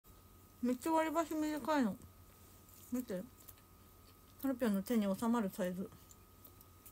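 A young woman speaks close up in a high, lively voice.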